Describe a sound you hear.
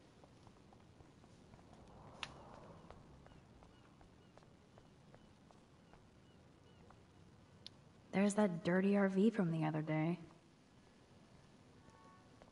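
Footsteps tap softly on pavement.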